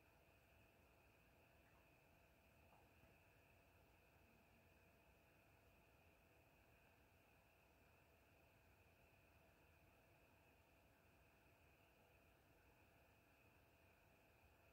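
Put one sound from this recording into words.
Faint music from a video game plays quietly through a television speaker.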